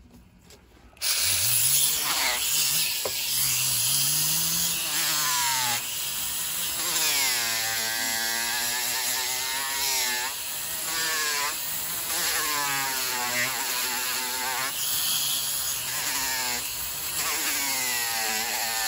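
A small rotary polishing wheel whirs loudly, its pitch sweeping up and down as it grinds.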